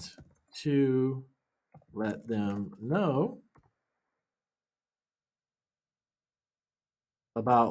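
A man speaks calmly and close to a microphone, pausing between phrases.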